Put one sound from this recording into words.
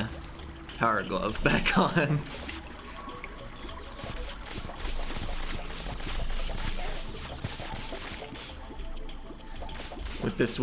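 Quick electronic hit and zap effects sound from a video game.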